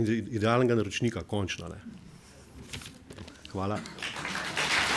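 A man speaks into a microphone in an echoing hall.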